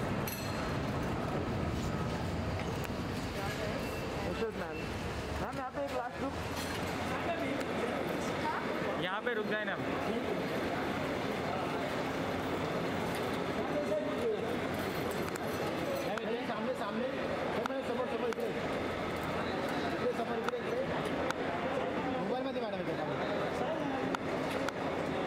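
Several men call out and talk loudly close by, in a busy crowd.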